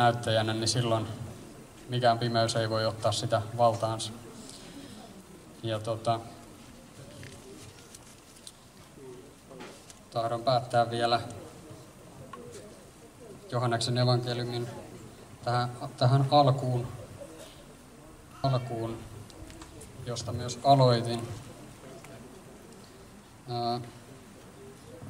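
A young man speaks into a microphone outdoors, heard through a loudspeaker, in short phrases with pauses.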